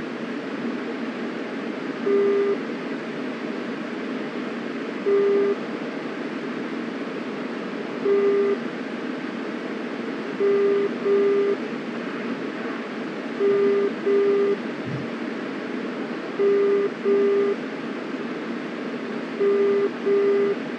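A jet engine roars steadily throughout.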